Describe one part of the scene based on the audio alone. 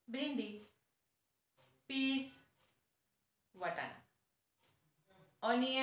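A young woman speaks calmly and clearly close by, in short phrases.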